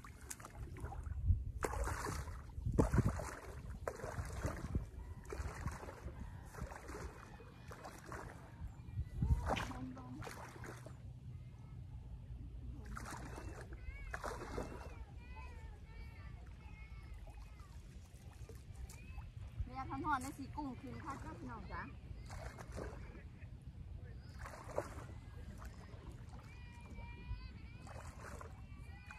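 Water sloshes and splashes around legs wading slowly through shallow water.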